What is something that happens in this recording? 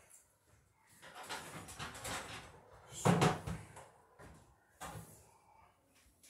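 Wooden boards knock and scrape under someone climbing.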